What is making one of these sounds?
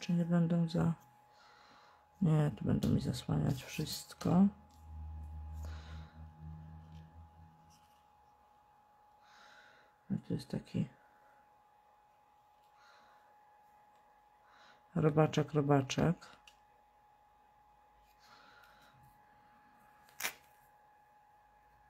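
Paper rustles and crinkles softly under hands.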